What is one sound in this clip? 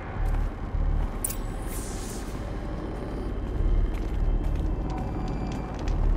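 Footsteps tread over a wooden floor.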